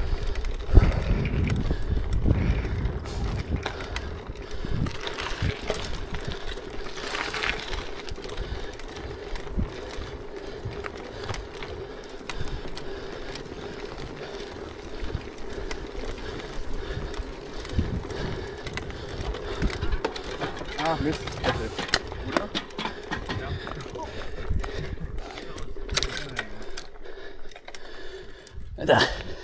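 Bicycle tyres rattle and bump over cobblestones.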